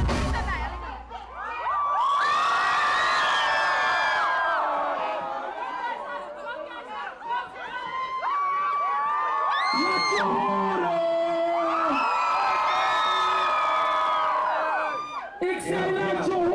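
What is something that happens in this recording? A young man sings loudly into a microphone over an amplified sound system.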